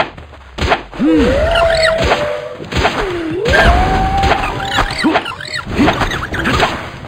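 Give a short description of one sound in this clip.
A small creature squawks in shrill, gliding cries.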